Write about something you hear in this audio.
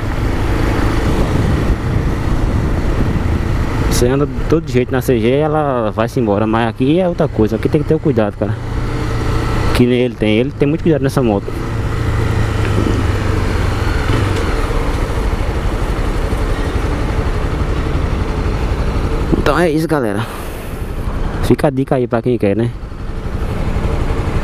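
Wind buffets the microphone of a moving motorcycle.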